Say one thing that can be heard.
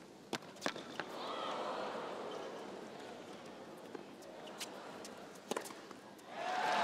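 A large crowd cheers and applauds in a big arena.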